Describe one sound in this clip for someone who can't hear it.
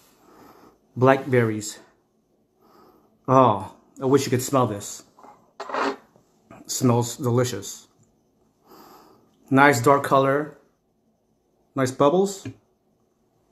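A man speaks close up, calmly and in short bursts.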